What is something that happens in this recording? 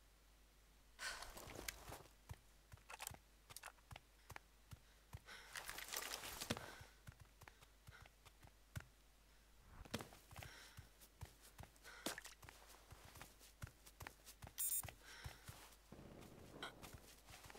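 Footsteps run quickly over ground and grass.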